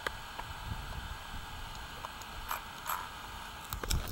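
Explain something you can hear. Plastic clicks and knocks as a toy car is handled.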